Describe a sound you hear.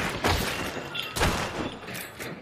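A gunshot booms loudly.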